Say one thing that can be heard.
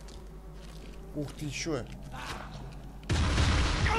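A monster snarls and growls close by.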